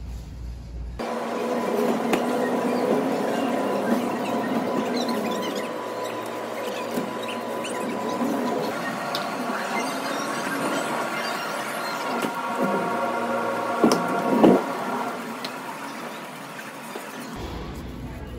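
A shopping cart rattles as it rolls along a hard floor.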